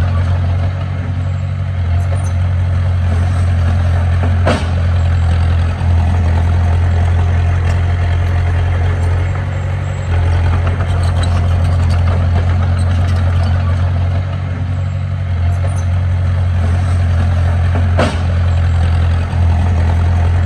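Metal tracks clank and squeak as a bulldozer moves.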